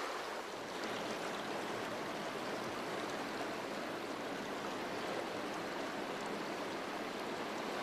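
Floodwater rushes and churns steadily.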